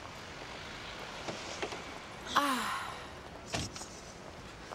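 A car door opens and shuts with a thud.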